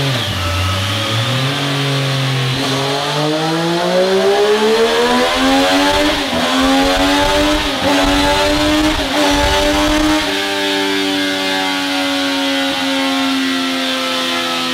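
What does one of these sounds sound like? A motorcycle engine revs loudly, climbing through the gears.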